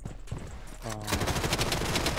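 Rapid gunfire bursts out close by.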